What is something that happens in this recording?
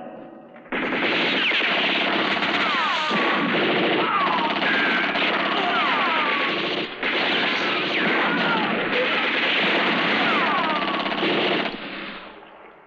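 Guns fire rapidly with loud shots echoing in a cave.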